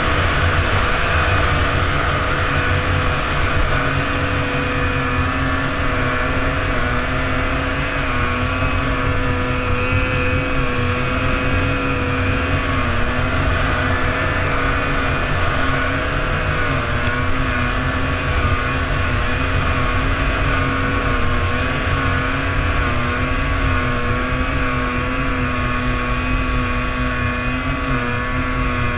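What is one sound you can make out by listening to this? Wind rushes past close by.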